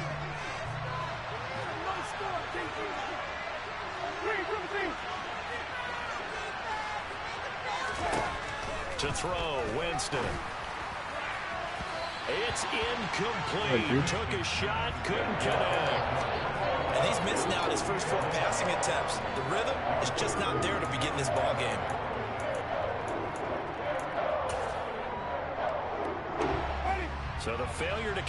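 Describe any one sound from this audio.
A stadium crowd murmurs and cheers in the background.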